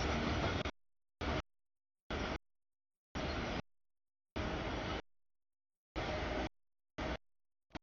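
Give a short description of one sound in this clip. A freight train rumbles and clatters past close by, in broken bursts.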